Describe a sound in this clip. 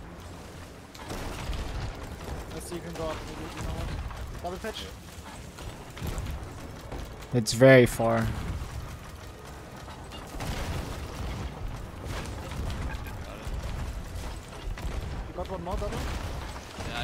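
Ocean waves wash against a wooden ship's hull.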